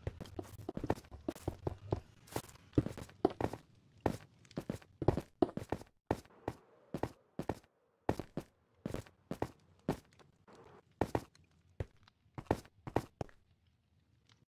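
Stone blocks are placed one after another with quick, dull thuds.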